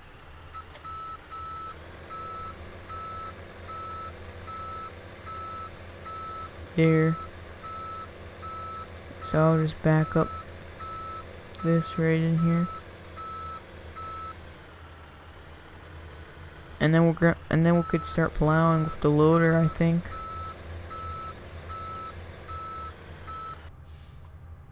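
A truck engine rumbles steadily as it drives.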